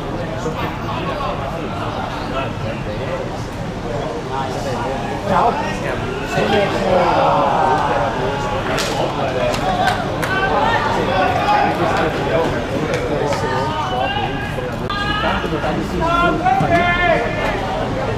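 Men shout to each other across an outdoor field.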